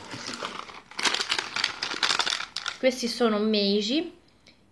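A plastic candy wrapper crinkles in someone's hands.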